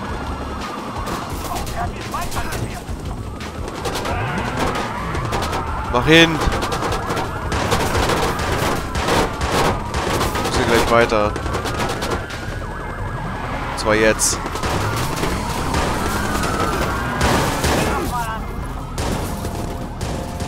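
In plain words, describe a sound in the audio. Police sirens wail, rising and falling.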